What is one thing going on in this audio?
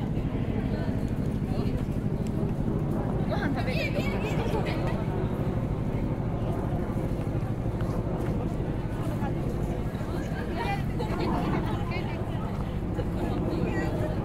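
A crowd of people chatters nearby outdoors.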